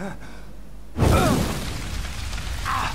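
Fire bursts into a loud roar.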